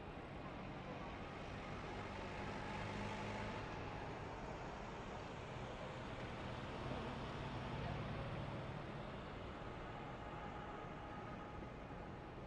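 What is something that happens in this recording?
A race truck engine drones loudly and steadily from close by.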